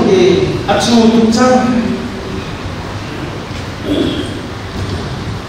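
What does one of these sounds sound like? A man speaks with animation into a microphone, heard through a loudspeaker in an echoing hall.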